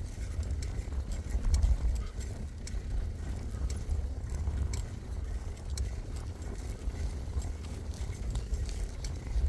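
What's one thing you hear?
A bicycle rattles with sharp clicks over bumps.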